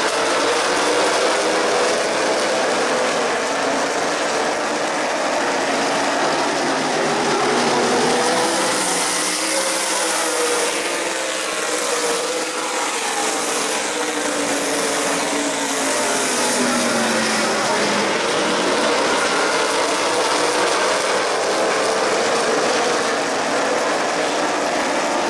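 A pack of race car engines roars loudly around an oval track.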